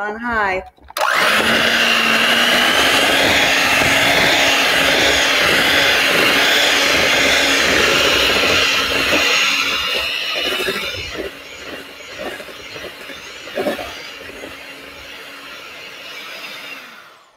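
An electric hand mixer whirs loudly.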